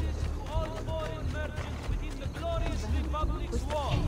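Footsteps run across cobblestones.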